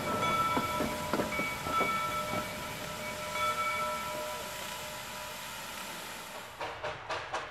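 A steam locomotive rolls slowly past.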